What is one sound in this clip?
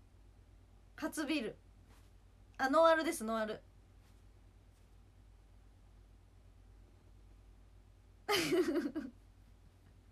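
A young woman speaks close up, in short bursts.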